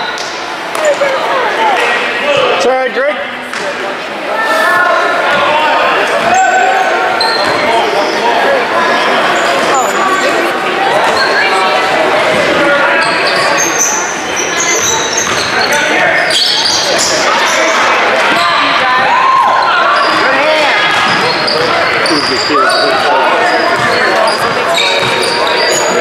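Sneakers squeak sharply on a hard floor in an echoing gym.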